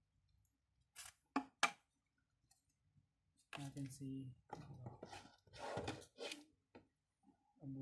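Cardboard boxes knock and rustle as they are handled.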